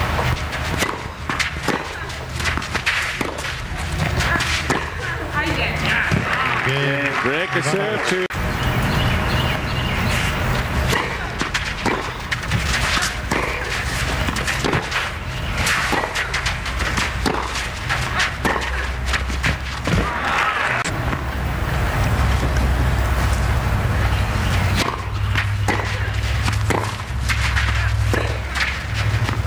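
Tennis balls are struck with sharp pops.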